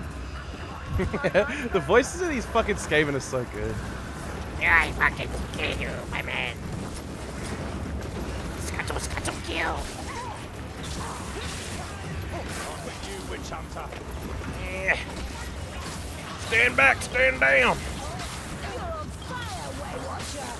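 Creatures snarl and screech.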